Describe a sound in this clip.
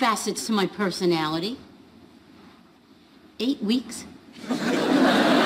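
An elderly woman speaks with animation.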